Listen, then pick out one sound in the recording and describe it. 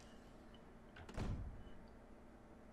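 A heavy wooden door slowly creaks open.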